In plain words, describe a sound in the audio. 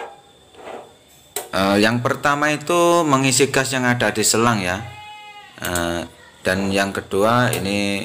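A gas stove knob clicks as it is turned.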